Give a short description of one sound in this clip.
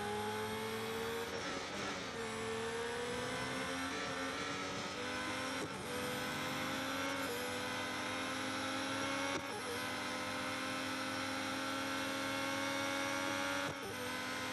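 A racing car engine whines at high revs, shifting gears with brief drops in pitch.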